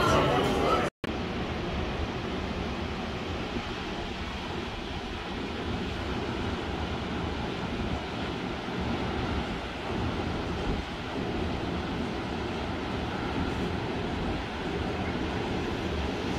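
Waves break on a shore in the distance.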